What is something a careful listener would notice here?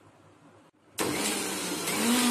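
A blender motor whirs loudly.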